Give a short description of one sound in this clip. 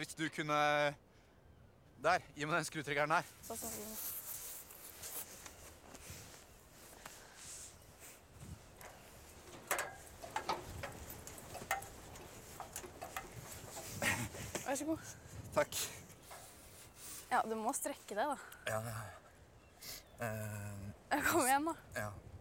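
A young man speaks calmly outdoors.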